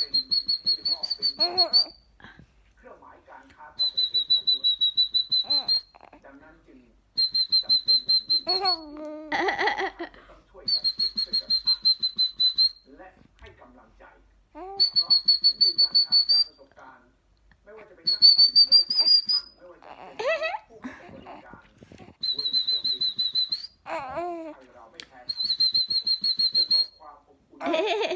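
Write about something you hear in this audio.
A baby coos and giggles close by.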